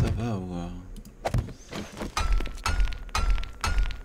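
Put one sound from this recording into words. A hammer knocks repeatedly on wood.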